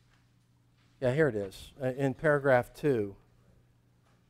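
An older man speaks clearly into a microphone.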